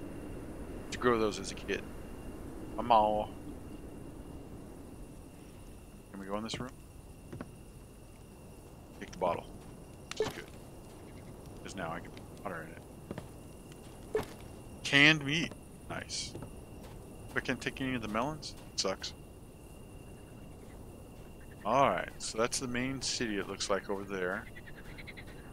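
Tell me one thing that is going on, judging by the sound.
A man talks calmly and casually into a close microphone, in short bursts.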